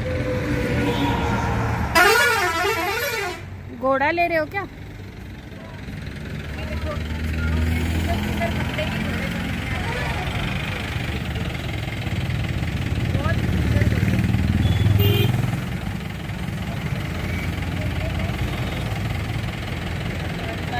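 Traffic rumbles past steadily on a nearby road.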